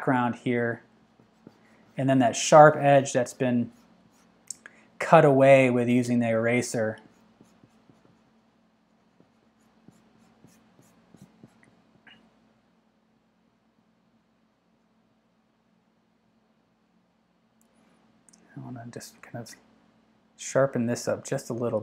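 A pastel stick rubs softly on paper.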